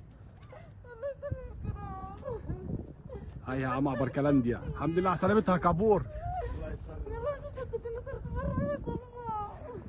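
A woman cries out and sobs with emotion nearby.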